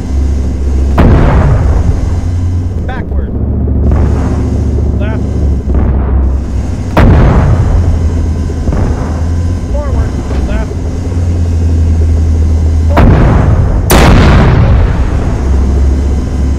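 Heavy explosions boom one after another and echo away.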